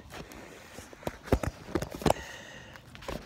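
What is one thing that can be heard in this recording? Boxing gloves thump against the microphone.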